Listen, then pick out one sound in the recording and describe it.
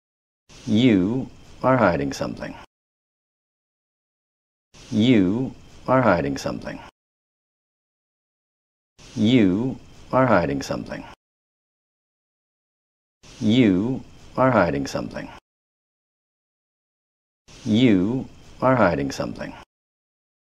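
A middle-aged man speaks tensely and close by, in short bursts with pauses between.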